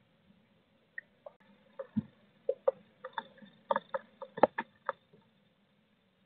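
A blue tit scratches and shuffles on nesting material inside a wooden nest box.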